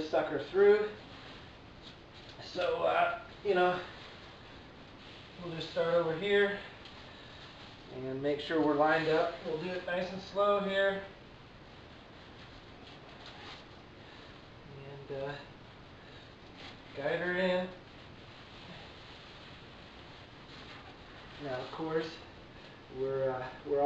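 Plastic sheeting crinkles and rustles under hands.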